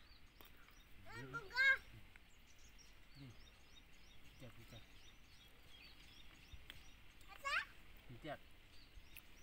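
A young child talks and calls out in a high voice close by.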